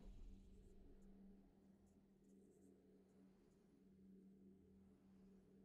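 Triumphant game music plays softly.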